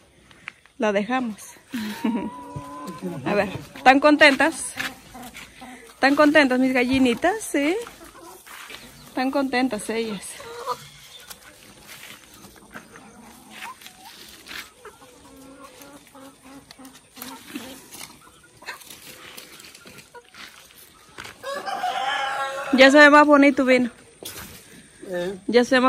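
Chickens cluck and squawk close by, outdoors.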